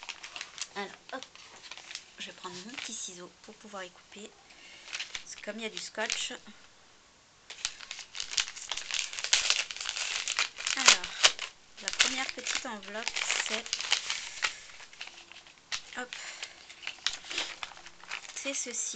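A young woman talks casually and close to the microphone.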